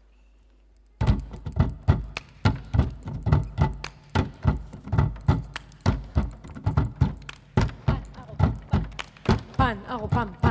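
A group of children beat out a quick, steady rhythm on a table.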